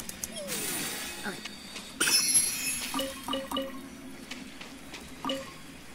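Bright magical chimes ring out as items are collected.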